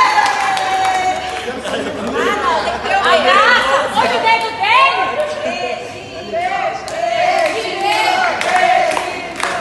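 A young man laughs and talks cheerfully nearby.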